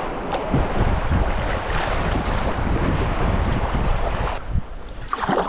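Rapids rush and roar loudly close by.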